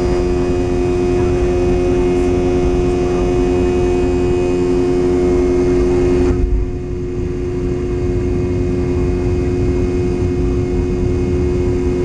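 A jet engine roars loudly with a steady whine.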